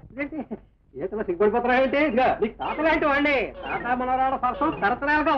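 A woman cries out and pleads.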